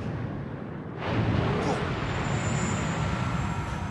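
A huge wave crashes and roars loudly.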